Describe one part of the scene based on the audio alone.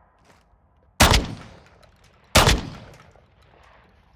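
A shotgun fires two loud, booming blasts that echo briefly.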